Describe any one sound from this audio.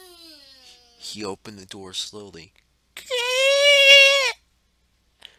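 A young boy talks with animation.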